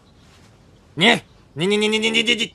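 A man shouts angrily, close by.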